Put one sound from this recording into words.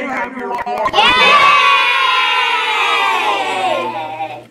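A group of young children cheers and shouts excitedly.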